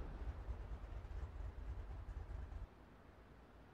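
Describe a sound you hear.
A race car engine roars loudly.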